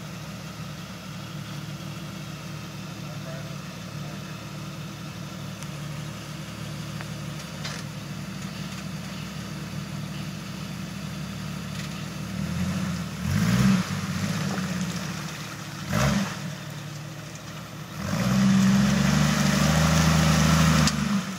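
A truck engine idles and then revs hard.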